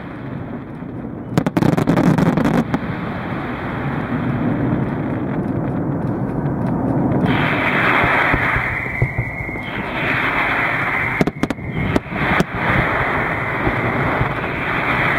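Fireworks crackle and fizzle steadily.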